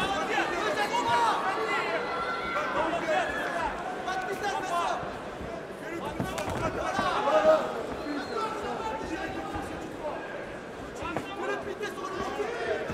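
A crowd cheers and murmurs in a large hall.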